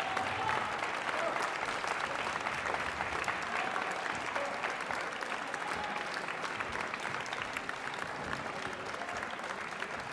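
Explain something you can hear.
A large audience applauds steadily in an echoing hall.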